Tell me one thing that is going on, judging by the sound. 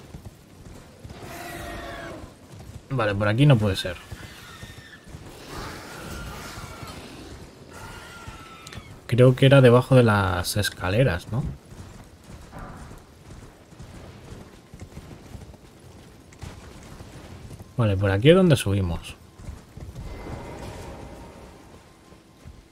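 A horse gallops over soft ground.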